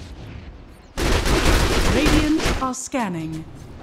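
Weapons clash and spells burst loudly in a busy game fight.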